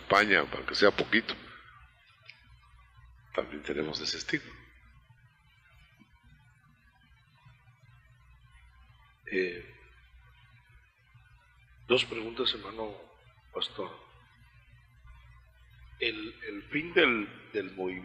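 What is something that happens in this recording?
A man preaches into a microphone with emphatic pauses.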